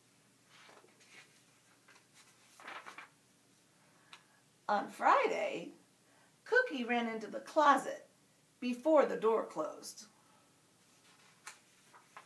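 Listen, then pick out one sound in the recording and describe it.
Book pages rustle as they are turned.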